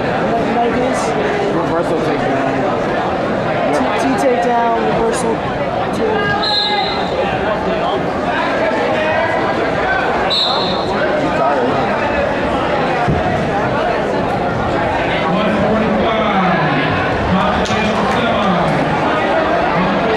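Men shout from close by.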